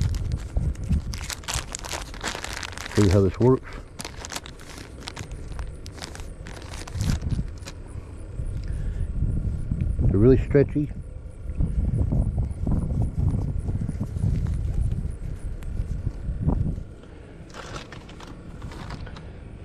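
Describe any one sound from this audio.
A plastic wrapper crinkles as hands unwrap it.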